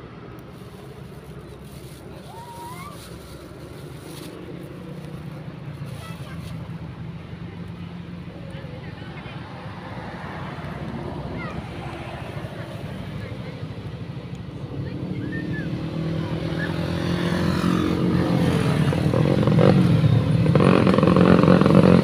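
Motorbike engines hum and grow louder as they approach along a road.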